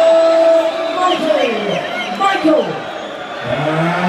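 A man announces loudly through a microphone and loudspeakers in a large echoing hall.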